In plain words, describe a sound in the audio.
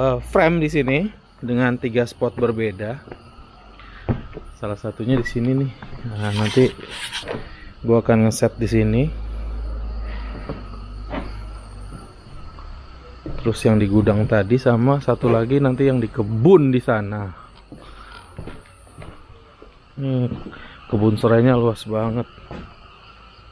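A man talks with animation close to the microphone.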